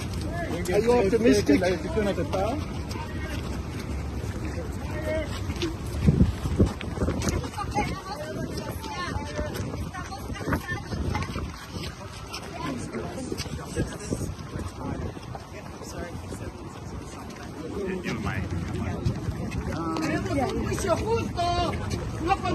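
A man asks questions loudly and with animation, close by.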